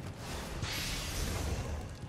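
A sword strikes metal with a sharp clang.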